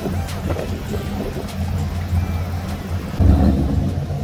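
A car engine rumbles at idle with a deep exhaust burble.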